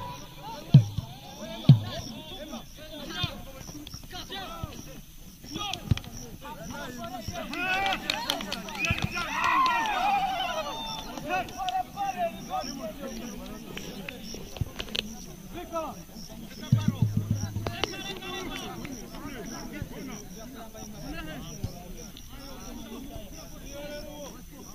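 Young people shout and call out across an open field.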